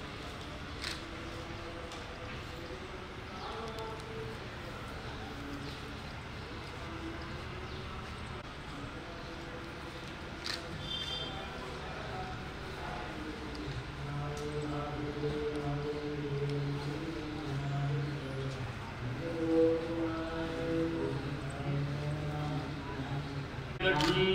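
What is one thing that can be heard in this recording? Men chant in low, steady voices nearby.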